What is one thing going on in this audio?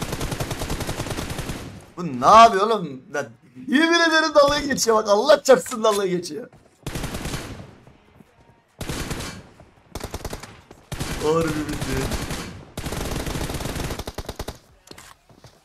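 Rapid gunfire from a video game crackles in bursts.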